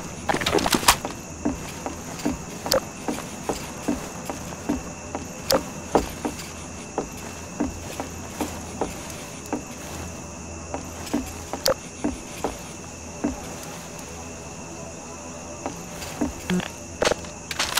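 Footsteps thud steadily on wooden boards and stairs.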